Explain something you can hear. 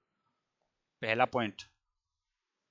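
A man speaks briefly and clearly into a close headset microphone.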